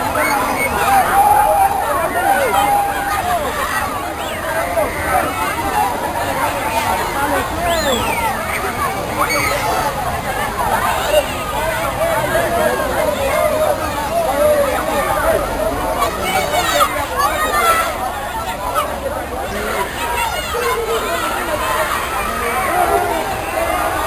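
Children squeal and shriek with excitement.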